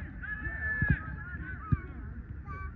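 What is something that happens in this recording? A soccer ball thuds off a foot.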